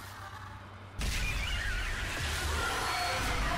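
A loud rushing roar bursts in and keeps going.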